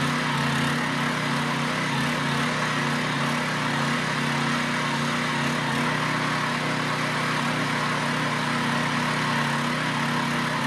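Tiller blades churn through soil.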